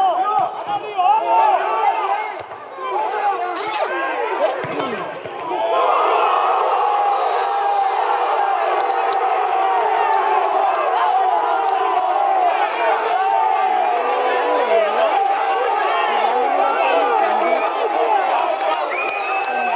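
Football players shout to each other across an open pitch, heard from a distance.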